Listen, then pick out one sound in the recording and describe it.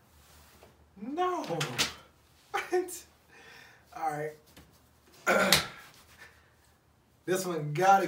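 Two men laugh loudly.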